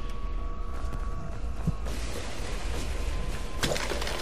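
Water sloshes and splashes underfoot.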